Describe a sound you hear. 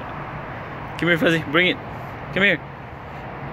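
A dog gives short whining yelps.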